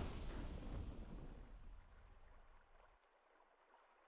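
A triumphant game fanfare rings out and slowly fades away.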